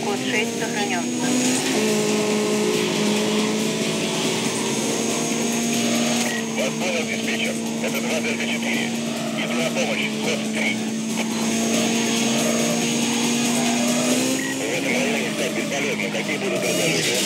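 A racing car engine roars at high speed, shifting gears.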